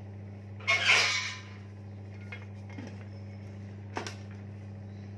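A metal lid clanks against a pot.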